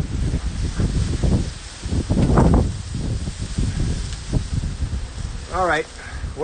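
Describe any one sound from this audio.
Tall grass rustles and swishes as someone brushes through it, outdoors in light wind.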